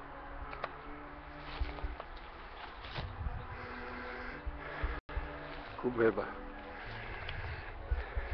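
Footsteps crunch through dry grass and stones.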